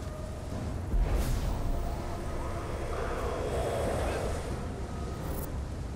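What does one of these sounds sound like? A sword strikes with a sharp impact.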